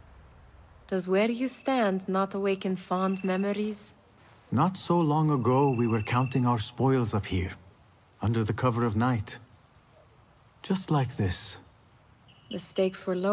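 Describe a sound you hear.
A young man speaks reflectively, close by.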